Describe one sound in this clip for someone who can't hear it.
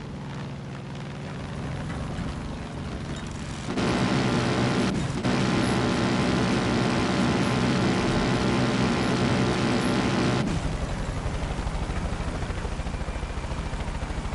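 A small propeller plane's engine drones steadily throughout.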